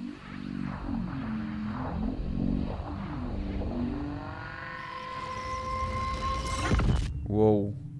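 A television buzzes and hums with static.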